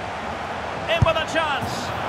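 A football is struck with a thump.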